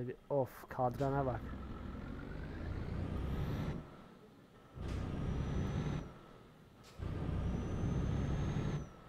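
A truck engine rumbles and revs as the truck pulls away.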